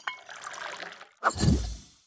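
Tea pours from a teapot into a cup.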